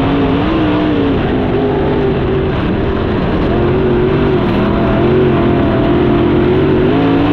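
A second racing car engine roars close by.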